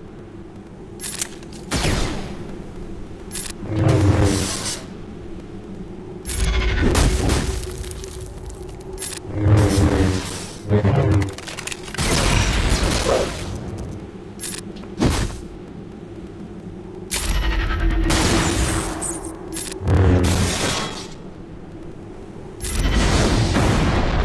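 Laser blasters fire in quick shots.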